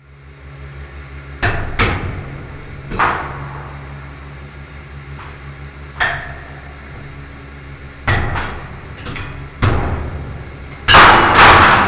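A hydraulic press hums steadily.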